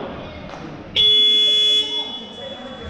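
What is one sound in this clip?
A referee's whistle blows one long shrill blast.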